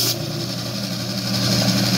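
A saw blade cuts through a small piece of material.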